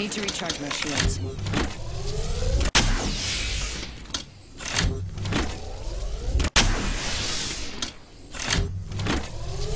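A video game's shield battery charges with an electric whirring hum.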